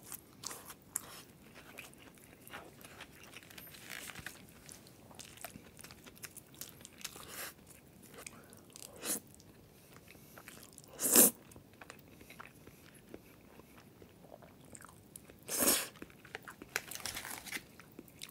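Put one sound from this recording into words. Chopsticks clink against a bowl.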